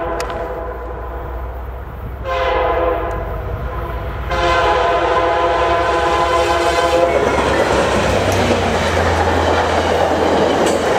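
A diesel locomotive rumbles past close by.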